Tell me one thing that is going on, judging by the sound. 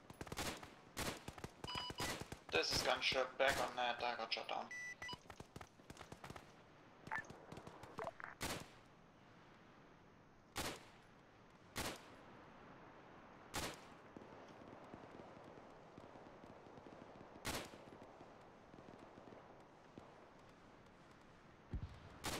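Rifle shots crack out one at a time, with a short echo after each.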